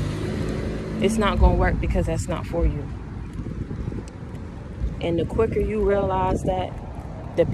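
A young woman speaks casually, close by.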